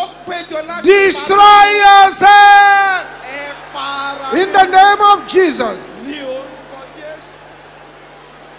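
A man shouts fervently through a loudspeaker in a large echoing hall.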